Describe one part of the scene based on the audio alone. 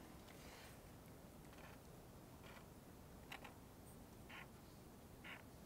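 A felt-tip marker scratches softly across a surface in short strokes.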